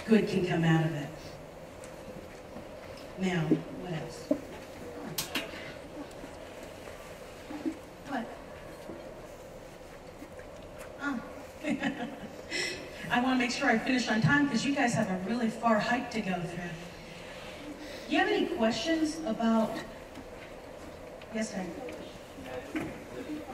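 A woman speaks with animation into a microphone, heard through loudspeakers in a large echoing hall.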